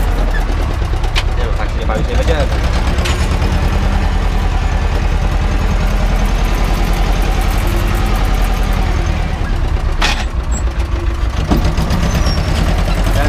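A tractor engine rumbles loudly and steadily close by.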